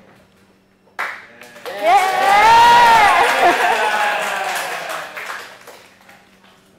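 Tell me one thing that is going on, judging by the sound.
Several young women laugh loudly into microphones.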